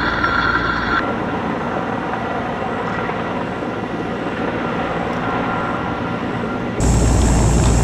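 A helicopter's rotor thumps overhead in the distance.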